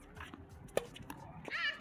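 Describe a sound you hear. A tennis racket strikes a ball with a sharp pop outdoors.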